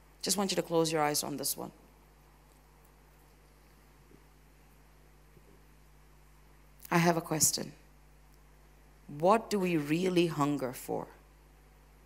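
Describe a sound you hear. A woman speaks with feeling through a microphone, in short bursts with long pauses.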